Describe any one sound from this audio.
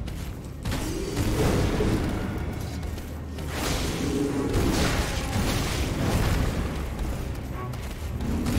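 Monsters roar and grunt during a fight.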